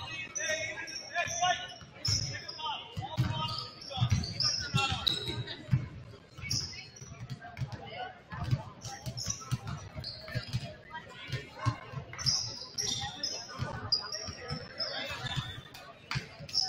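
Basketballs bounce with hollow thumps in a large echoing gym.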